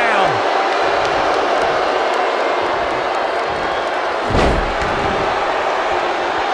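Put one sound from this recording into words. A crowd cheers and roars loudly throughout.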